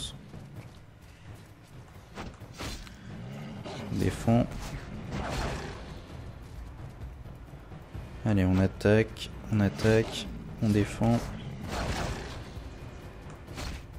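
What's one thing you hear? Wolves snarl and growl.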